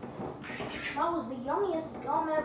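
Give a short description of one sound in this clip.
A young boy speaks nearby in a lively voice.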